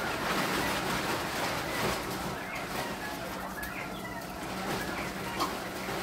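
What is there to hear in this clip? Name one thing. Chickens cluck and chirp nearby.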